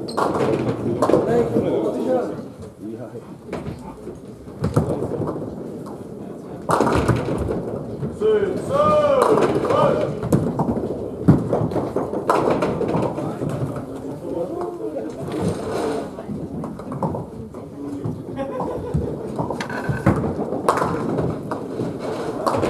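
Men's voices chatter and call out in an echoing hall.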